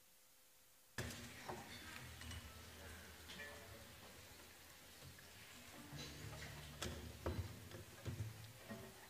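A string orchestra plays in a large hall.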